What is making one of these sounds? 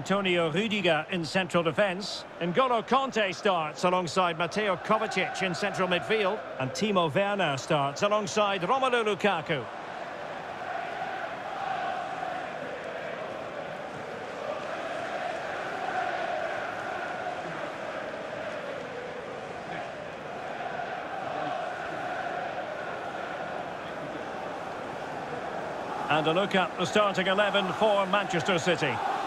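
A large stadium crowd sings and chants, echoing around the stands.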